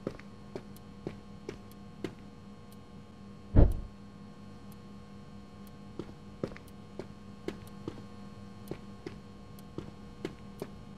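Footsteps tread on a hard floor at an even pace.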